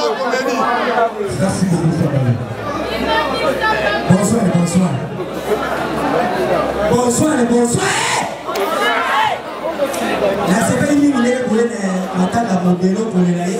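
A young man sings with animation into a microphone through loudspeakers.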